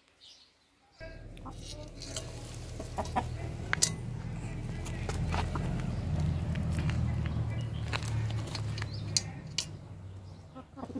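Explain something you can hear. Food rustles and thuds as it is shaken from a pot onto the ground.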